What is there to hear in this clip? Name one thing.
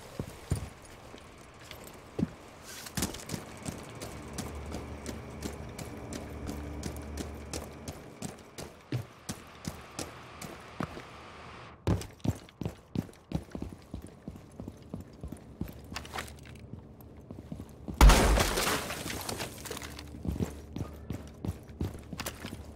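Footsteps tread quickly over hard ground.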